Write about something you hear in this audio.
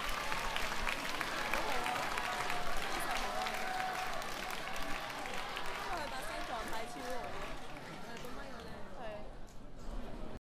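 A band plays on a stage.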